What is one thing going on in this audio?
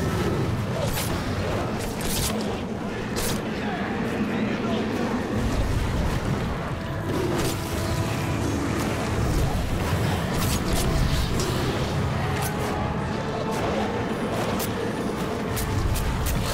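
A dragon breathes roaring fire.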